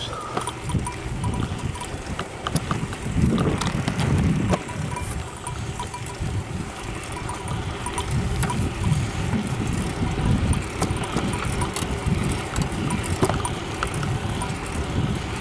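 Wind rumbles past while riding outdoors.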